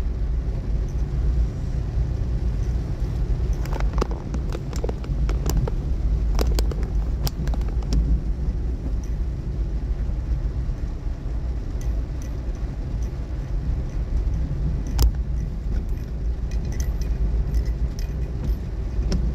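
Tyres roll over a wet, bumpy road.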